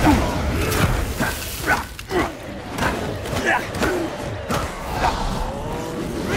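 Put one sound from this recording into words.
Magical energy blasts burst with crackling whooshes.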